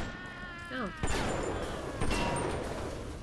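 A shotgun fires.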